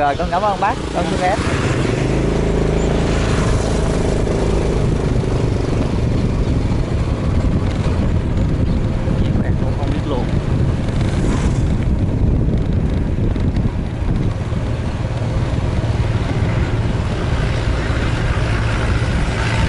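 A motorbike engine hums steadily up close.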